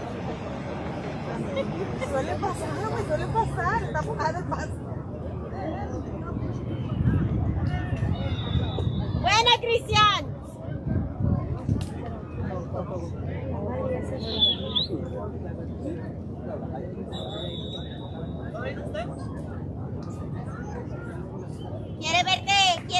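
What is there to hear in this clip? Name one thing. Young men call out to each other from a distance outdoors.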